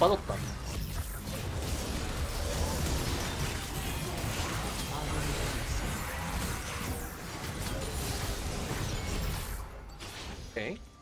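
Game combat impacts thump repeatedly.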